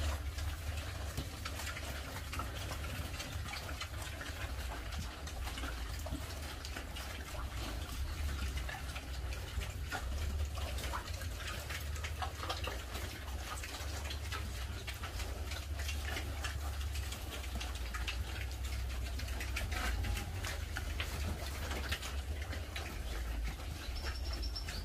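Pigs grunt.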